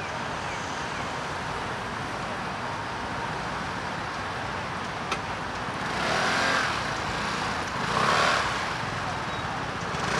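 A motor scooter engine idles close by.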